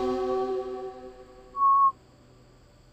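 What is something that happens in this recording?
A short game jingle rings out and fades.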